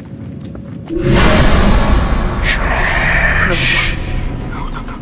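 A young woman screams in terror.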